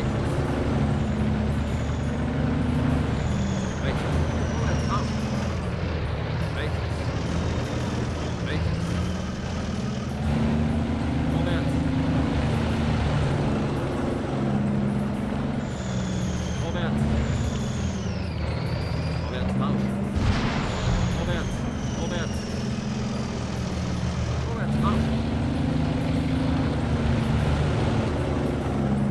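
A tank engine rumbles steadily and deeply.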